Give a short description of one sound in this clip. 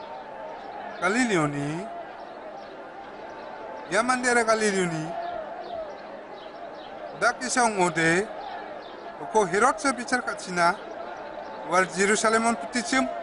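An older man speaks in short phrases with pauses.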